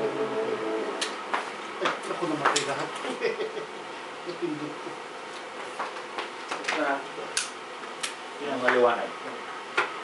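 Light knocks and clatters sound as things are handled.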